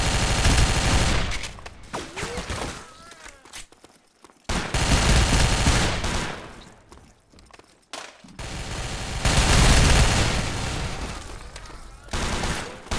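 Loud rifle shots boom and echo.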